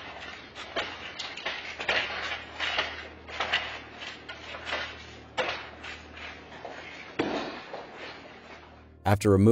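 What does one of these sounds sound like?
Coins and objects clatter as a cash drawer is rummaged through.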